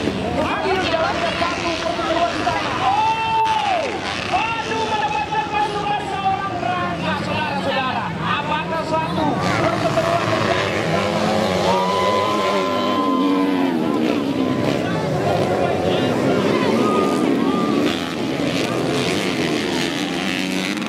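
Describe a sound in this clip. Dirt bike engines rev and whine loudly, rising and falling in pitch.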